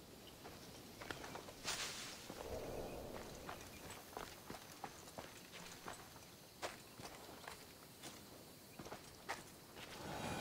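Footsteps crunch softly over dry grass and dirt.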